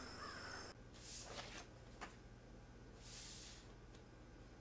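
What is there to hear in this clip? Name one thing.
A paper envelope rustles softly.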